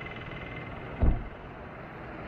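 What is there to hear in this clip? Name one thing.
A car door slams shut with a thud.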